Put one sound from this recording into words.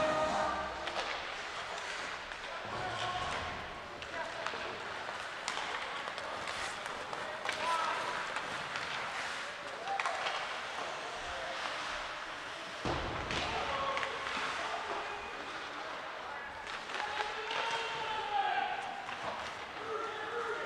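A crowd of spectators murmurs and shouts in a large echoing arena.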